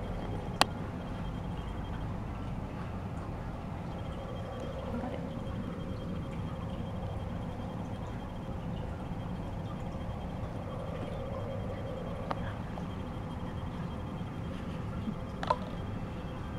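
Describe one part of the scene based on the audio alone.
A cat's paw knocks against plastic cups with light taps.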